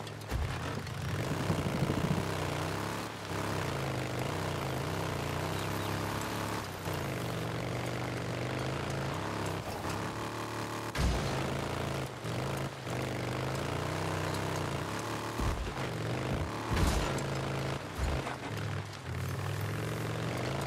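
Tyres crunch over a dirt track.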